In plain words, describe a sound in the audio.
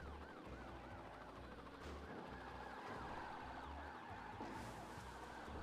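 A police siren wails rapidly up and down close by.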